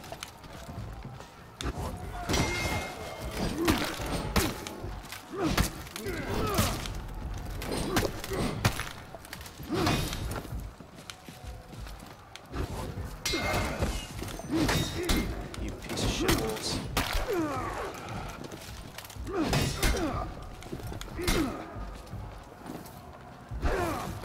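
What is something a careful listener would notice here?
Swords and shields clang and clash in a fight.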